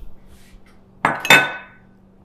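Dishes clatter loudly.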